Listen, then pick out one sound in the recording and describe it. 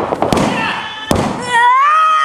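A referee slaps the mat.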